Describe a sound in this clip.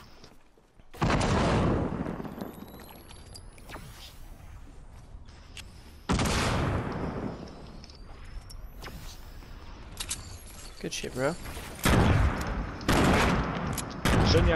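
Wooden planks thud and clatter as walls are quickly built.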